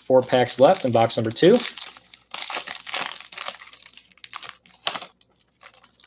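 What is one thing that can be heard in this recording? A foil wrapper crinkles and tears as it is pulled open.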